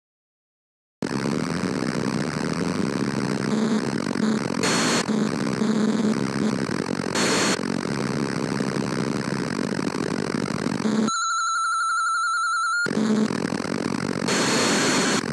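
A steady buzzing game engine drone plays with bright electronic zaps.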